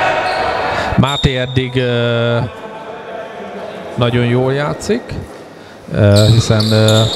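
Young men shout across a large echoing hall.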